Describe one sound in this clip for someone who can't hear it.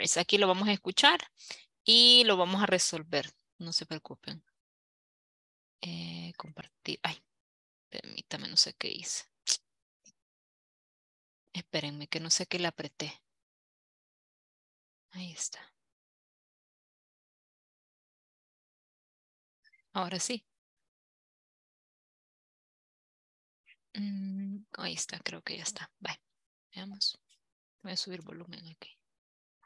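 A woman speaks in bursts through an online call.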